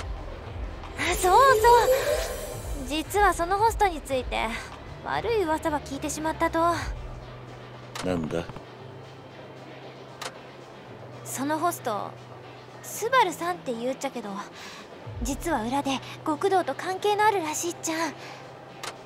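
A young woman speaks brightly and playfully, close by.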